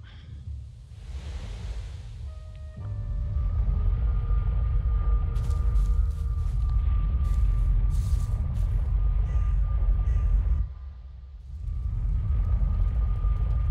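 A swirling portal hums with a deep, steady roar.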